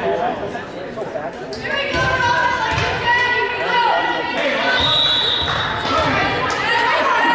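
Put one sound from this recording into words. A volleyball thumps off hands and the floor.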